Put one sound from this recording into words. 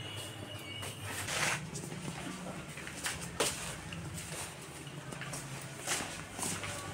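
Footsteps tap on a hard floor.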